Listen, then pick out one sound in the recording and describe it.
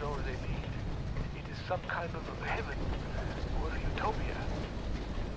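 A young man speaks close into a headset microphone.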